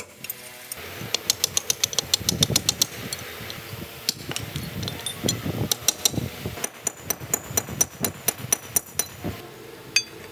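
A hammer strikes a metal chisel with sharp, ringing clanks.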